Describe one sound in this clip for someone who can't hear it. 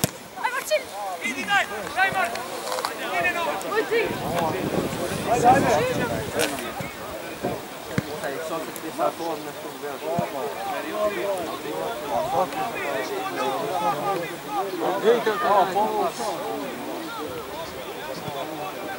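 Boys shout and call to each other across an open field.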